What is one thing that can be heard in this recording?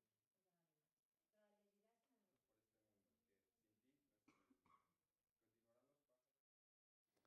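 A young man reads aloud calmly, heard through a microphone.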